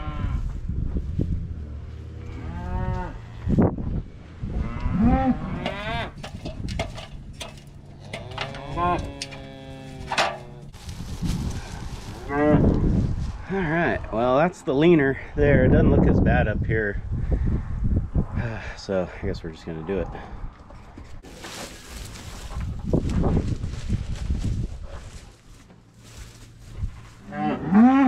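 Cattle moo nearby.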